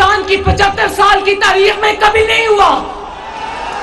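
A woman speaks forcefully into a microphone over loudspeakers.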